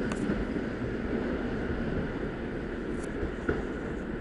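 A second train rolls slowly toward a platform.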